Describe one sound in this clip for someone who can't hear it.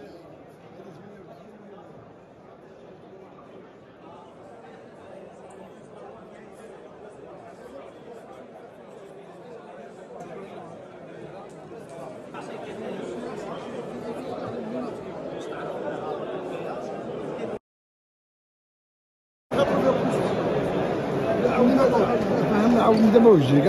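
A crowd of men chatter in a busy, echoing hall.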